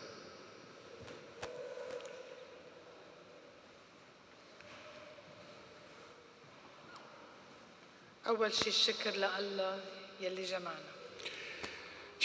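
A woman speaks calmly into a microphone, heard through loudspeakers in a large echoing hall.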